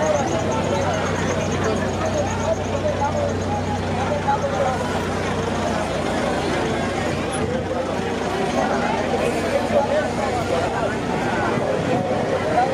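A crowd of men and women chants and shouts loudly outdoors.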